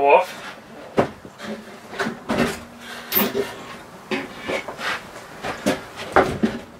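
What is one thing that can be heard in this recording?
A wooden table top knocks and clatters as it is lifted.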